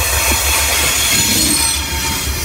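Train wheels clatter and squeal loudly on the rails.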